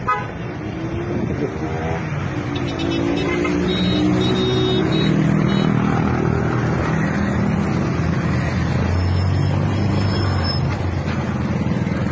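Motorcycle taxi engines putter close by.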